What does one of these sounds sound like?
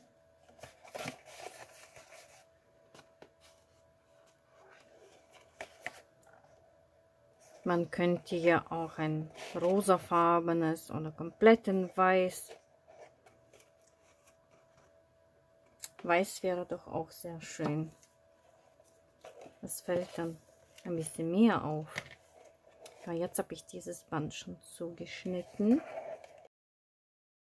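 Paper rustles and crinkles softly.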